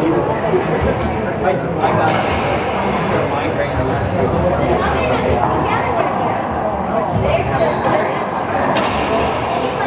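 A ball smacks against walls and racquets with sharp, echoing bangs.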